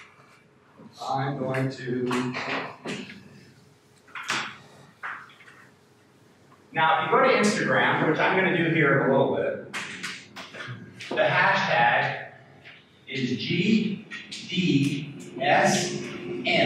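A man lectures in a room with a slight echo.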